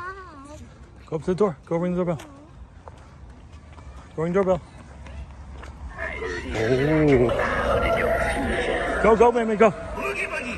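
Young children talk and shout excitedly close by.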